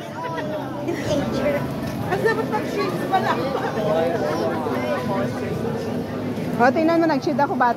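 A crowd of men and women chatter nearby, outdoors.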